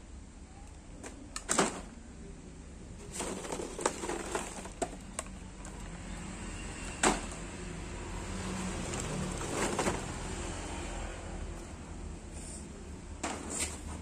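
Stiff plastic packaging crinkles and taps as toys are handled.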